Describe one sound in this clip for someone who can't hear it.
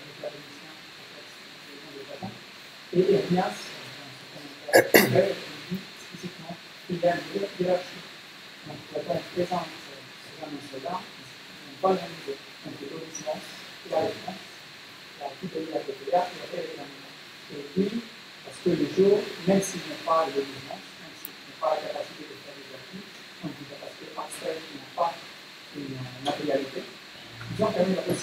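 A young man speaks calmly into a microphone in a room with slight echo.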